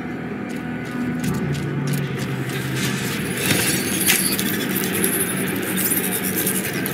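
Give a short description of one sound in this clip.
A heavy machine whirs and rumbles.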